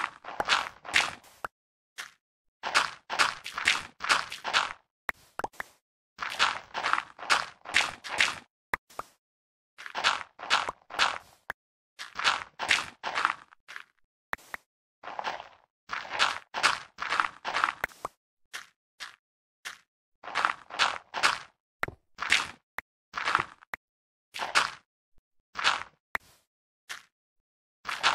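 Dirt crunches in quick bursts as it is dug out, block after block.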